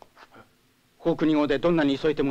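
Another man speaks in reply, close by.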